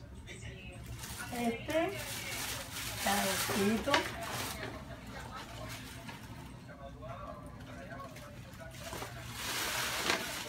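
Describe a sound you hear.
Paper rustles as gift tissue is pulled from a bag.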